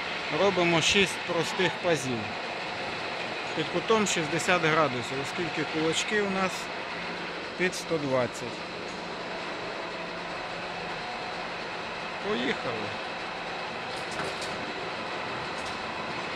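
A milling machine hums steadily nearby.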